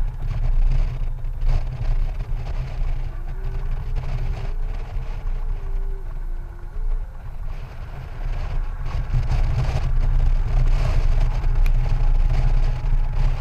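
Wind rushes and buffets loudly against a microphone.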